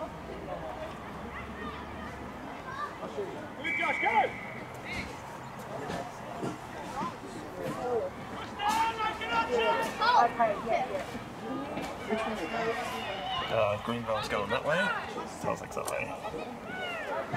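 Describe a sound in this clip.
Children shout and call out across an open field outdoors.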